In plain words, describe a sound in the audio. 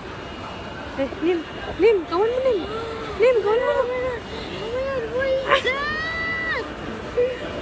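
Young women talk and exclaim excitedly close by.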